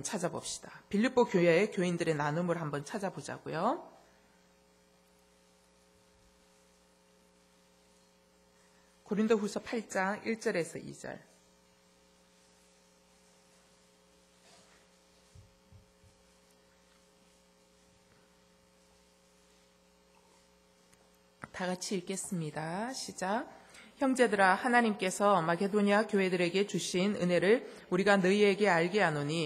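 A woman speaks calmly into a microphone, with long pauses.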